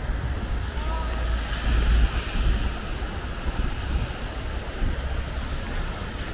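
Footsteps splash on wet pavement.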